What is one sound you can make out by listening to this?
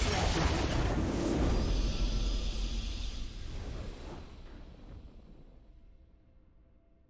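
A triumphant game victory fanfare swells loudly and then slowly fades away.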